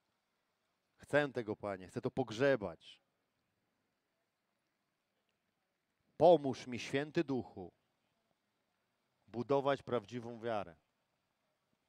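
A man speaks clearly into a microphone in short phrases with long pauses.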